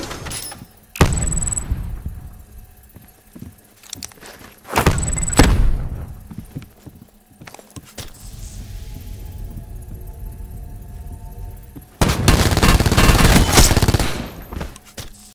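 Automatic gunfire rattles in loud rapid bursts.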